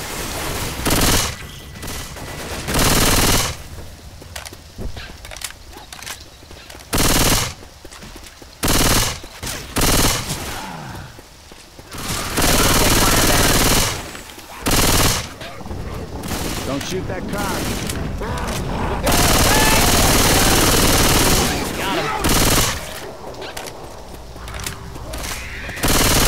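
Gunfire bursts loudly in short volleys.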